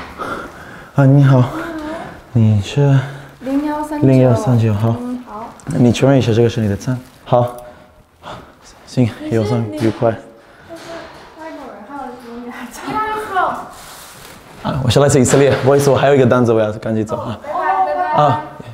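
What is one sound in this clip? A young woman answers and laughs.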